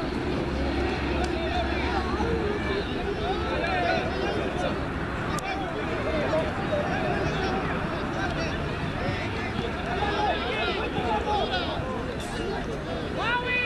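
Children shout and call out excitedly across an open field.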